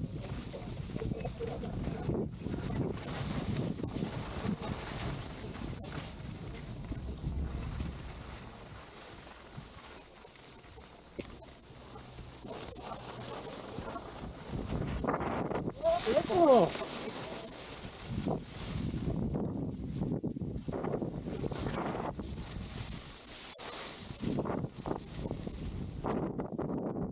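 Skis scrape and hiss over hard snow.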